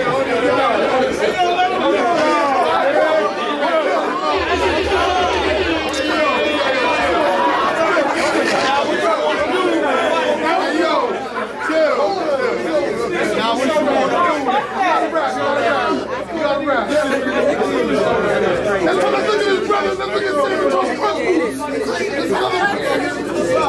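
A young man raps loudly and rhythmically in an echoing room.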